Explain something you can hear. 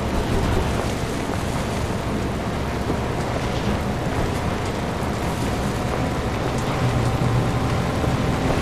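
Tyres roll and bump over a rough dirt track.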